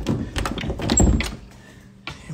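Handling noise rumbles and knocks close by.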